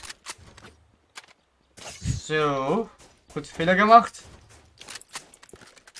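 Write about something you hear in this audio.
A gun is handled with metallic clicks.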